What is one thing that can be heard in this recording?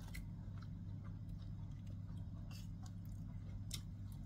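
Fingers pick at food on a plate with faint clicks.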